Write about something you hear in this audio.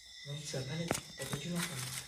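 Paper rustles as a hand handles it.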